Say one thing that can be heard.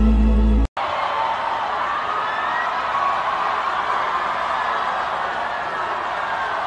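A large crowd cheers loudly in a big echoing hall.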